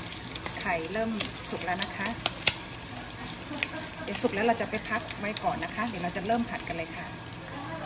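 A spatula scrapes and stirs eggs in a metal pan.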